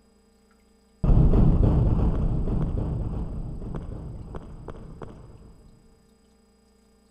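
A heavy stone door grinds open with a deep, slowly fading rumble.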